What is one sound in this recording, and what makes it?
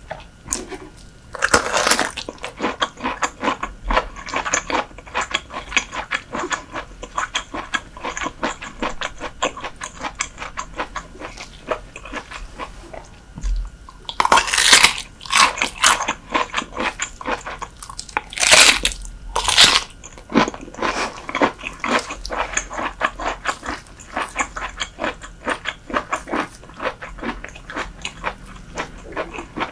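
Crunchy food crackles and crunches loudly as a young woman chews close to a microphone.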